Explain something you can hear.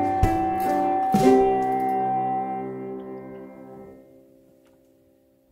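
A band plays piano, bass and guitar, then fades out.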